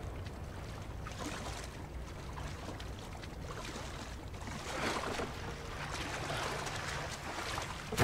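Water splashes as a swimmer paddles.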